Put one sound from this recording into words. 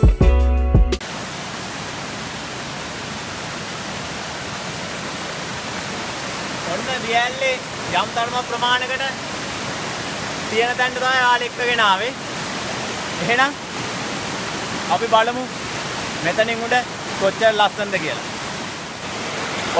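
Water rushes steadily over rocks in a stream.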